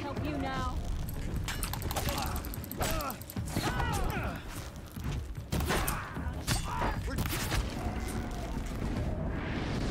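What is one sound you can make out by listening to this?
A bowstring twangs as arrows are loosed.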